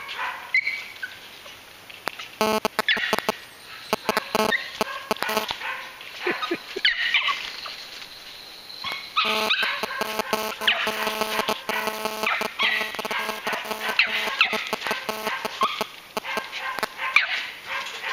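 A small dog scampers through leaves on the forest floor.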